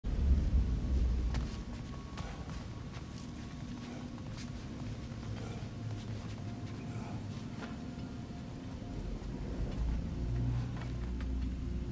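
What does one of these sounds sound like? Heavy footsteps thud on stone and earth.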